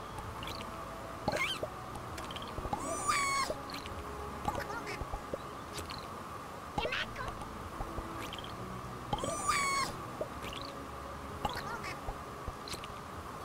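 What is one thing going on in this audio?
Small creatures chirp and squeak in high, quick bursts.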